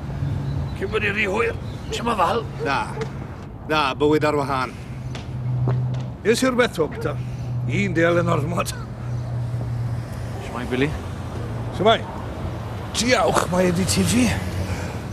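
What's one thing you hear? Another middle-aged man answers calmly close by.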